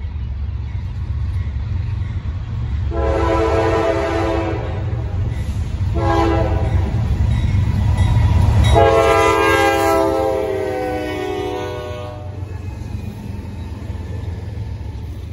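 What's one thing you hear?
Diesel locomotives rumble deeply as they approach and pass close by.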